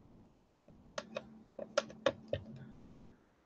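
A plastic tool taps and presses against paper.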